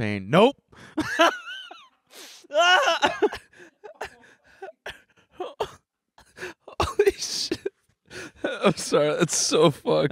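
A second young man talks and laughs into a microphone.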